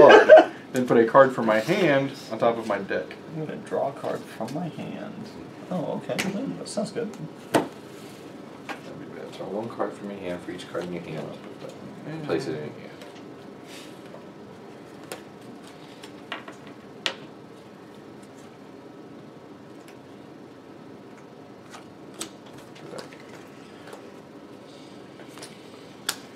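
Playing cards tap and slide on a table.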